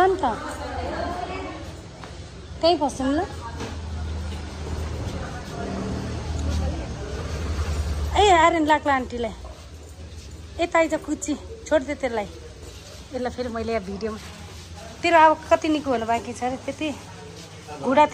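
Young girls talk and chatter excitedly close by.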